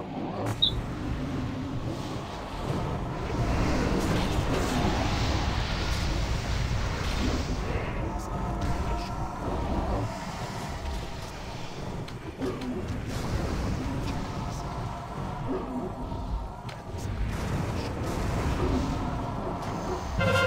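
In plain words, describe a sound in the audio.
Game spells and weapon blows clash in a busy battle.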